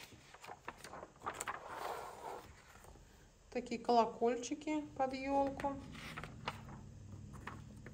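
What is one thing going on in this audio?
Magazine pages rustle and flip as they are turned.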